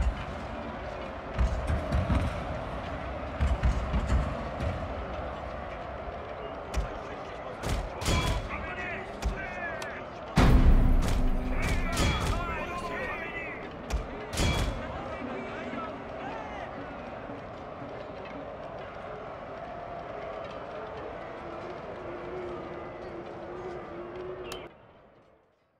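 A battle rages with the clash of many soldiers fighting.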